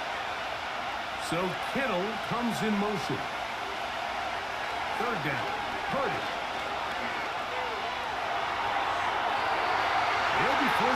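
A large stadium crowd roars steadily and grows louder toward the end.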